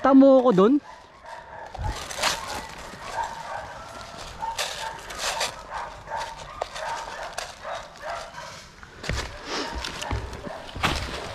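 Footsteps crunch on loose rocks and dry leaves.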